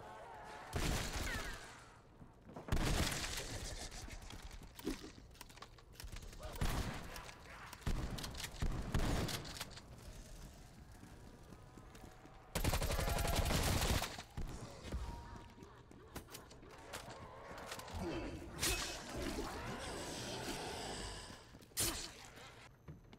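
Gunfire rings out in loud, rapid bursts.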